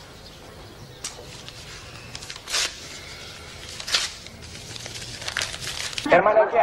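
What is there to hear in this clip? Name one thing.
Paper rustles as an envelope is torn open.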